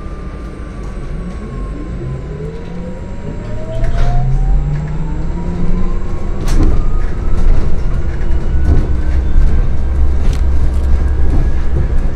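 A hybrid city bus pulls away with a rising electric motor whine.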